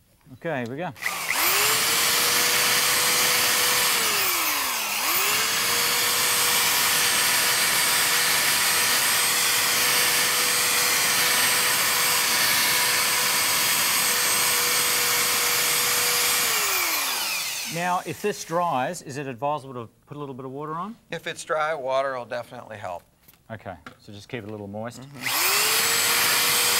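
A cordless drill with a polishing pad whirs at a steady high pitch, briefly slowing and revving up again.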